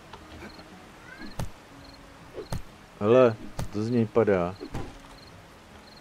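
A wooden club thuds heavily against a body.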